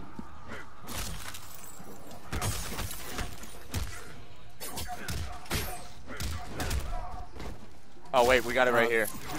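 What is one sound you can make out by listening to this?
Blows land with sharp thuds and cracks in a fight.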